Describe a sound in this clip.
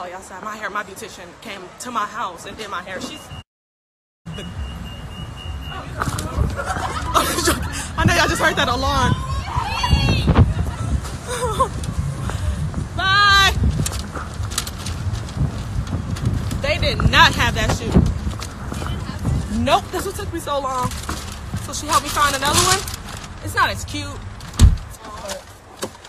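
A young woman talks with animation close to a phone's microphone.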